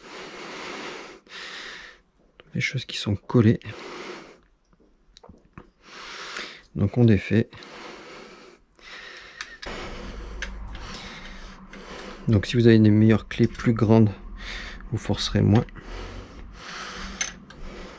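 Hard plastic parts click and knock as they are handled.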